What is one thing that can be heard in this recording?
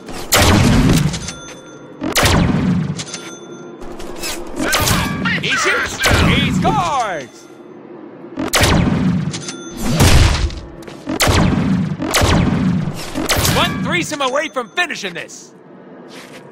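Heavy guns fire in loud, booming bursts.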